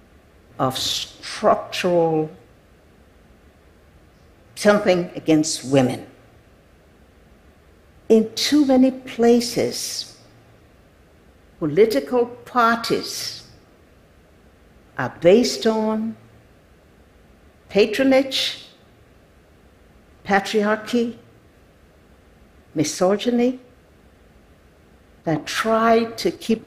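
An elderly woman speaks slowly and deliberately through a microphone, with long pauses.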